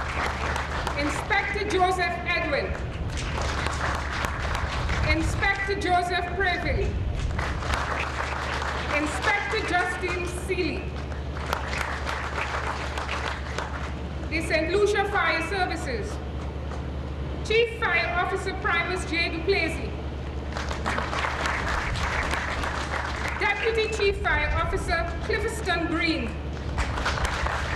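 A woman reads out slowly through a microphone and loudspeakers outdoors.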